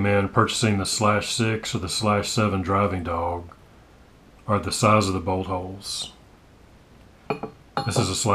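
Metal parts clink softly as they are fitted together.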